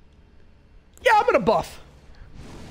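A man shouts loudly close to a microphone.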